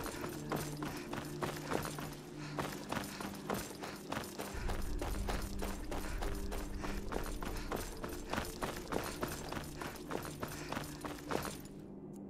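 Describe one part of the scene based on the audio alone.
Footsteps fall steadily on stone.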